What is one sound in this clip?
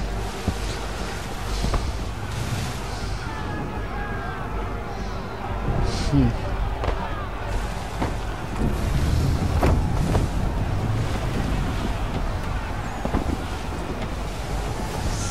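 Ocean waves and wind rush steadily around a sailing ship.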